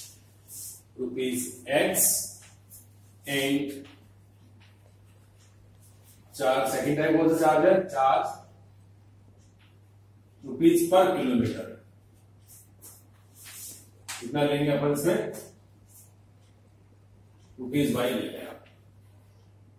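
A man speaks calmly and slowly, close by, in short phrases.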